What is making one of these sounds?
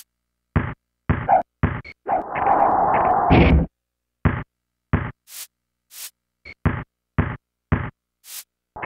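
A basketball bounces steadily on a hard floor.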